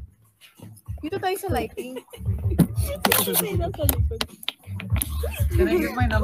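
Young women talk and laugh excitedly close to a phone microphone.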